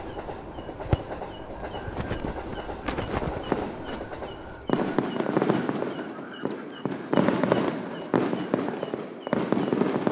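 Fireworks burst and crackle in the sky.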